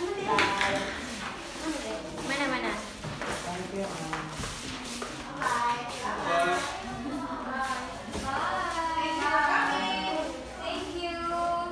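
Young people talk and chatter close by with animation.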